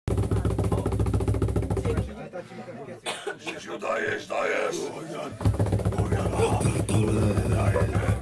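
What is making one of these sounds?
A band plays lively music.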